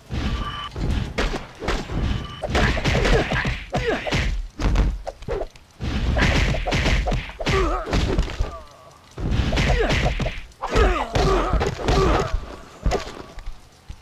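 Heavy punches and kicks land with dull thuds.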